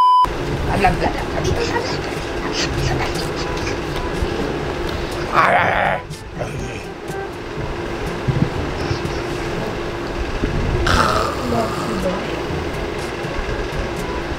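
A young man talks playfully, close by.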